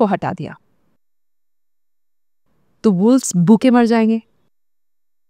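A woman speaks calmly and expressively into a close microphone.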